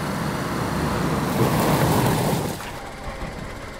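Leaves and branches scrape against a car.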